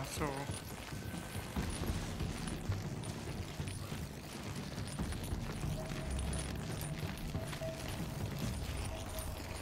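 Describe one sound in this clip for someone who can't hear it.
Footsteps crunch quickly over snow.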